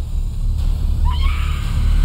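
A man cries out in distress.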